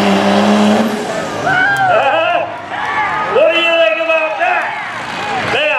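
A crowd cheers and shouts nearby.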